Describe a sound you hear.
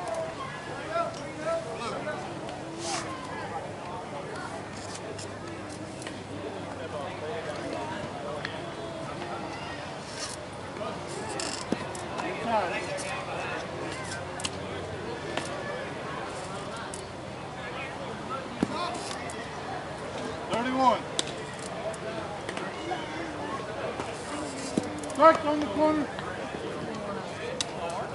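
Men talk and call out casually nearby, outdoors.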